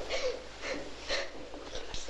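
A young woman talks in a tearful voice, close by.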